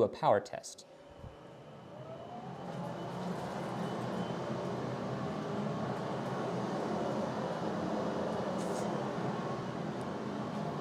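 A laser engraving machine whirs steadily.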